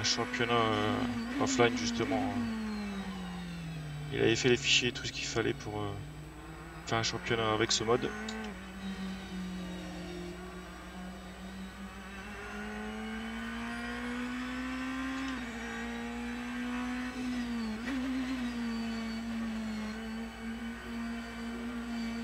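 A racing car engine drones and revs up and down, shifting gears.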